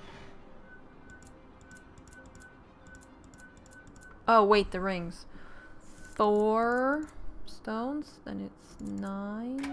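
Metal dials click as a combination lock turns.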